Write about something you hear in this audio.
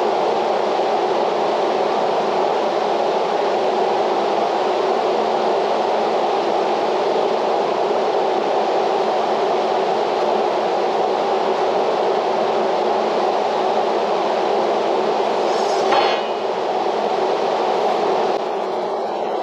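A fan whirs steadily nearby.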